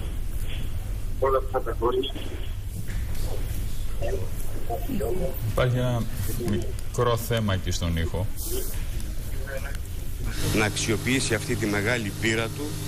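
A middle-aged man speaks calmly into microphones close by.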